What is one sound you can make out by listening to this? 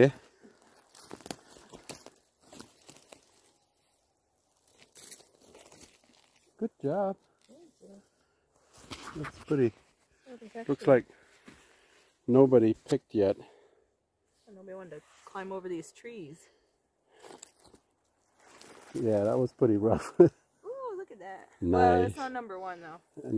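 Dry leaves and twigs rustle and crackle on the ground.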